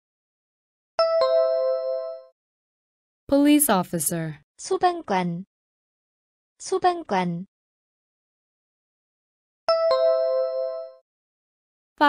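A bright electronic chime rings out and fades.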